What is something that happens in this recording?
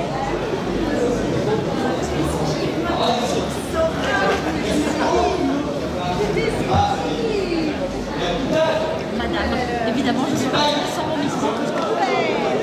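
A crowd of men and women chatters in a busy, echoing hall.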